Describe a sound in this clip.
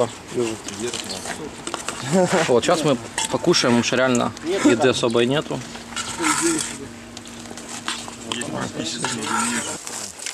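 A ladle scrapes and clinks against a metal pot.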